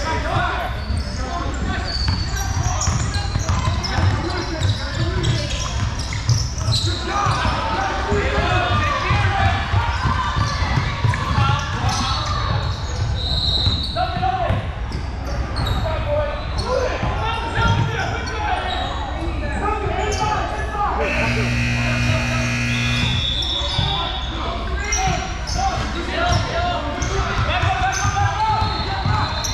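Young players call out and shout to each other.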